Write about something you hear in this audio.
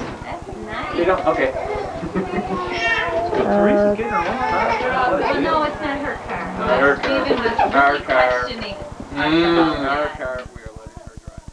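Young children chatter and call out.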